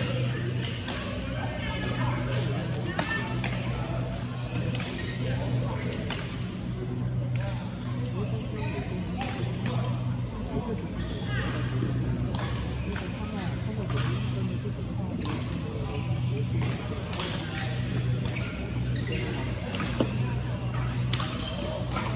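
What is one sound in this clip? People chatter in the background of the echoing hall.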